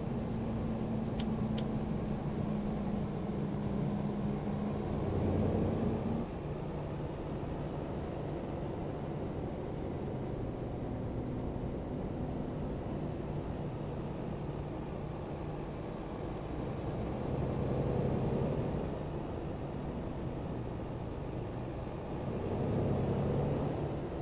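A truck engine drones steadily from inside the cab, rising and falling in pitch as it works.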